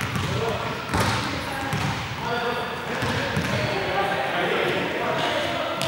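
Footsteps run across a hard floor in a large hall.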